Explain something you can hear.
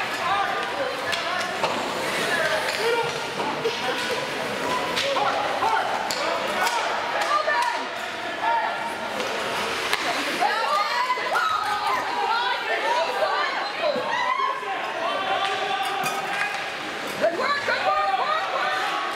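A crowd of spectators chatters and calls out in a large echoing arena.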